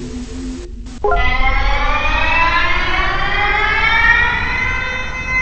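An emergency alert siren wails loudly, rising in pitch.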